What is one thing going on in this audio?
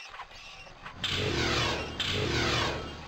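A magic spell hums and shimmers loudly.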